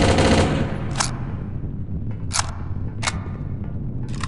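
Metal clanks as a rifle is reloaded.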